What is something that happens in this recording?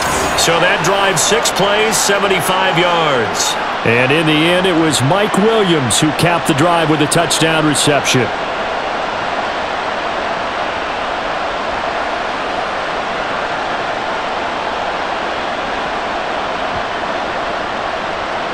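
A large crowd roars and cheers in a big stadium.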